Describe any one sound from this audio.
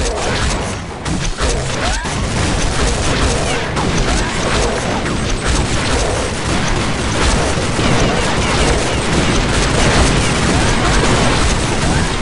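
A blade swishes and slashes through the air.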